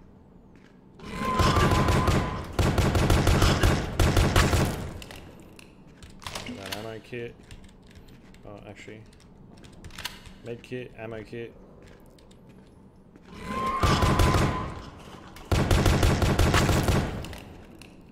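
A gun fires in rapid loud bursts.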